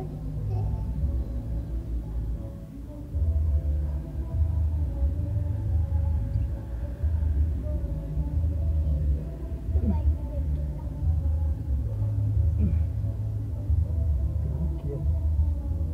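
A cloth rubs and rustles against fur.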